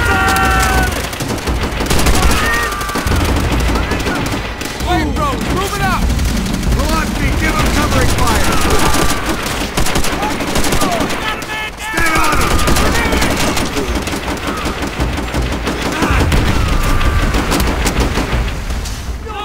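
Rifles and machine guns fire in rapid bursts.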